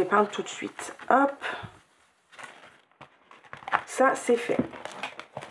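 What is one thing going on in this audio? Paper pages rustle as they are handled and turned.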